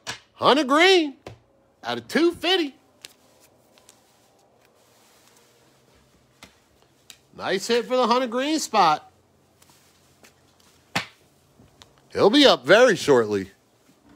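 Trading cards are set down on a table with a soft tap.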